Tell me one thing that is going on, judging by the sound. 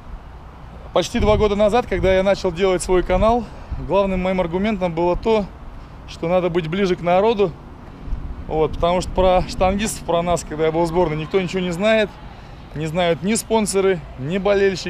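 A man speaks calmly and close up, outdoors.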